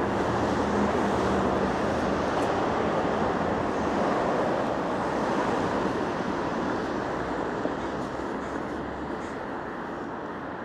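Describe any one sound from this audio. Traffic rolls by steadily on a nearby street, slowly fading.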